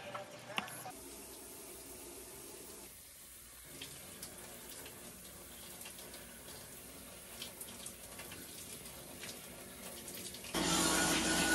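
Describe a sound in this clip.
Water from a shower sprays and patters steadily.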